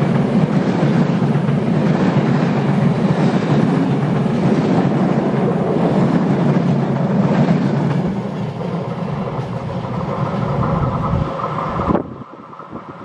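A train rumbles past close by, its wheels clattering on the rails, then fades into the distance.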